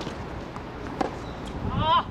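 A tennis racket strikes a ball with a crisp pop.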